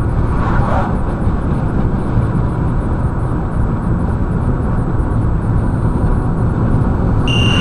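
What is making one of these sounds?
A car drives fast along a highway, with a steady low road rumble heard from inside.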